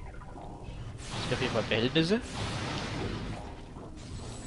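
A beam weapon fires a buzzing burst of energy.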